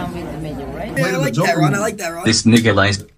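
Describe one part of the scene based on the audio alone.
Several young people talk loudly together.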